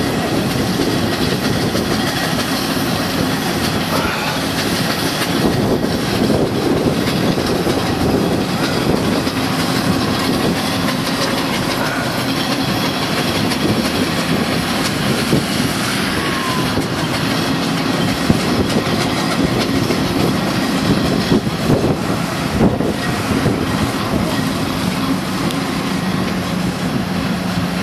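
Car and van engines hum steadily nearby.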